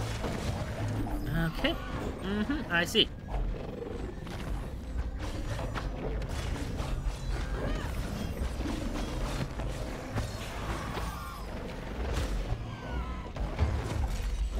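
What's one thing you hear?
Low music rumbles steadily.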